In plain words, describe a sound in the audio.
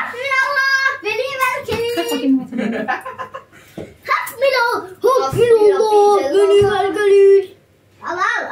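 A woman sings cheerfully close by.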